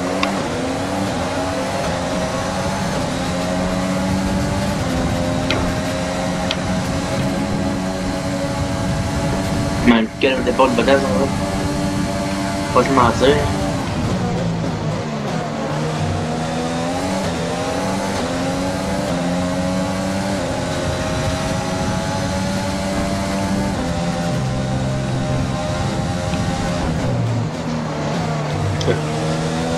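A racing car engine screams at high revs, rising and falling as it shifts gears.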